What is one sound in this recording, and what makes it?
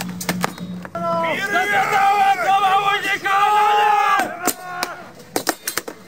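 Men shout loudly together outdoors.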